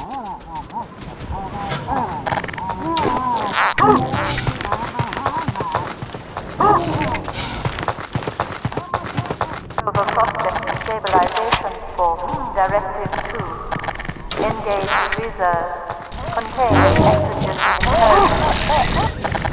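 Giant insect-like creatures chitter and screech.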